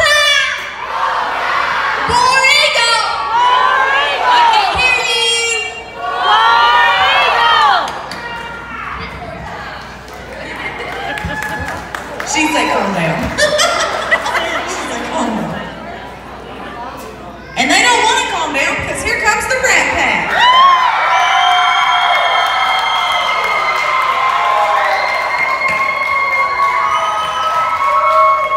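Young performers speak and shout with animation through a loudspeaker in a large echoing hall.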